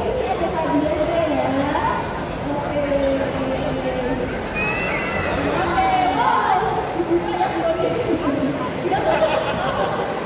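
A young woman speaks through a microphone over loudspeakers in a large echoing hall.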